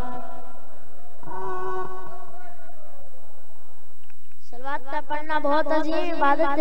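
A boy chants melodically into a microphone, heard through a loudspeaker.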